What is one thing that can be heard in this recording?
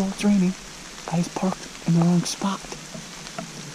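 A man whispers quietly close by.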